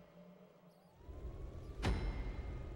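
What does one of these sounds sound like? A car engine rumbles and revs.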